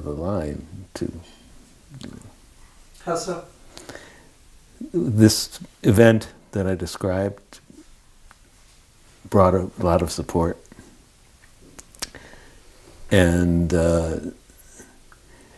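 An older man speaks calmly and thoughtfully, close to a microphone, with pauses.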